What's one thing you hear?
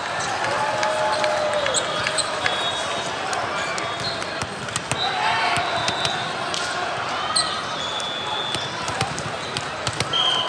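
A crowd of voices echoes through a large hall.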